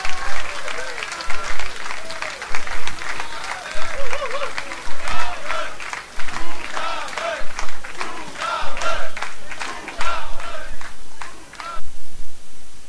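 An outdoor crowd cheers loudly.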